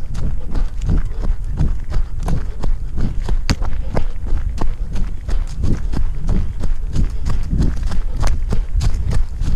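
Quick footsteps crunch on a dirt trail with dry leaves.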